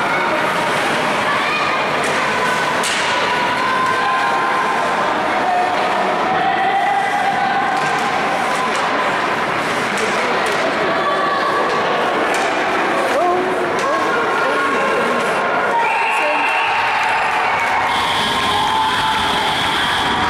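A crowd of spectators chatters and cheers in an echoing rink.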